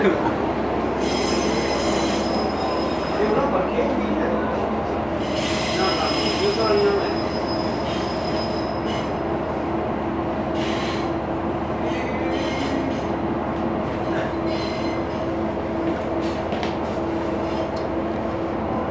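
A train rumbles and hums steadily as it rolls along the tracks.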